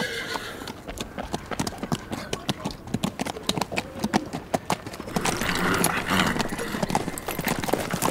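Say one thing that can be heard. Horse hooves clop on the ground.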